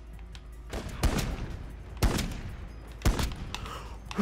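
A sniper rifle fires single loud shots, each followed by a short echo.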